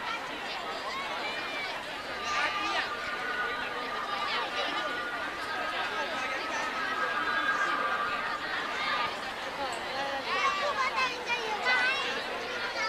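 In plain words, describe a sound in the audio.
A crowd of people chatters and calls out nearby, outdoors.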